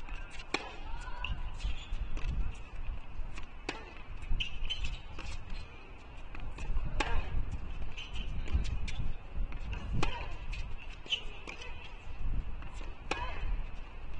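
A tennis ball is struck hard with a racket, again and again.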